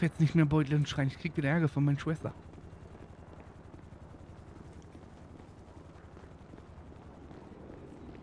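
Footsteps walk across pavement.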